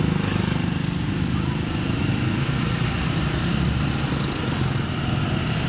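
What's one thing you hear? A motor scooter rides past close by.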